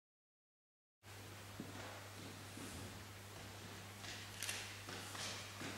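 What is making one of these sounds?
A classical guitar plays softly in a quiet echoing hall.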